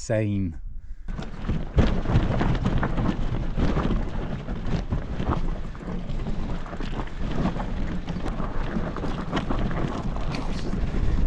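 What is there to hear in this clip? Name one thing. Wind rushes loudly over the microphone.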